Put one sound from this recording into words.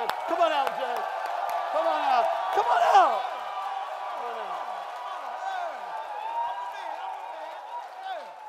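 A crowd cheers and whoops loudly in a large room.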